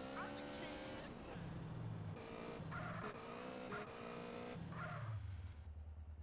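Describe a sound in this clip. A motorcycle engine revs and roars.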